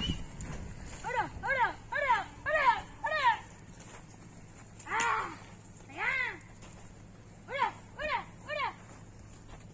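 A young boy shouts repeatedly at cattle outdoors.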